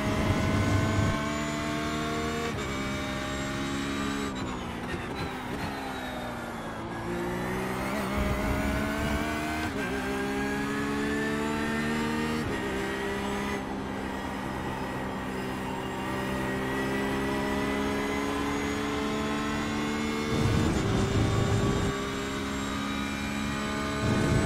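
A racing car engine roars, rising and dropping in pitch as the gears shift.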